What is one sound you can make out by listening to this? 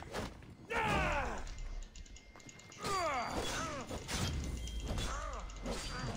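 A sword slashes and strikes an opponent.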